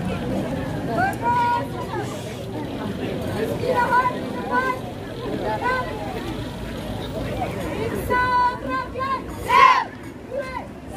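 A young woman shouts commands loudly outdoors.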